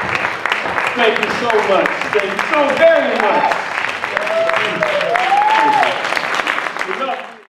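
Audience members cheer and whoop.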